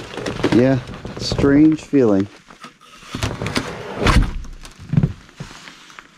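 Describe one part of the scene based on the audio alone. A gloved hand handles a metal part.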